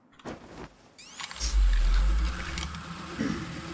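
A zipline whirs and rushes as a figure slides along it.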